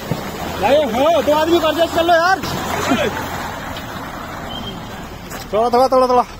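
A man speaks loudly and with animation close by.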